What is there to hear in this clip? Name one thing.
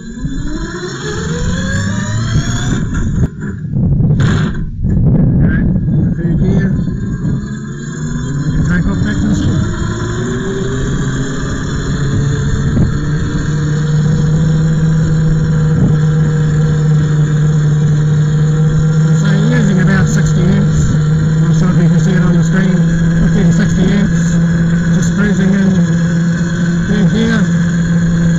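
An electric motor whines, rising in pitch as it speeds up and then holding steady.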